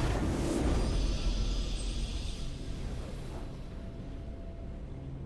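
A triumphant game fanfare plays and fades away.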